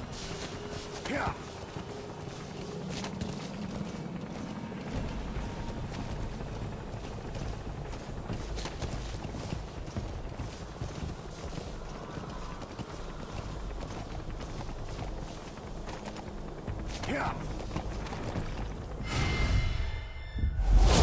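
A horse gallops, hooves thudding on dirt.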